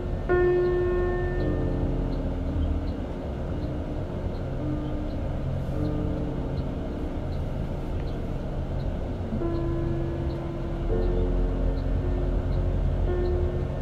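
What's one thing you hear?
Tyres rumble steadily on a road from inside a moving vehicle.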